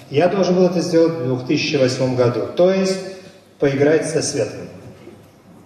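A man speaks with animation into a microphone, his voice amplified through loudspeakers.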